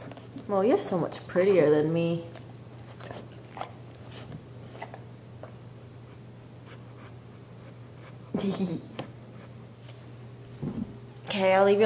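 A young woman speaks playfully and close by.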